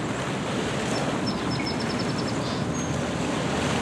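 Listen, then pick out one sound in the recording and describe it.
A small bird chirps near the water.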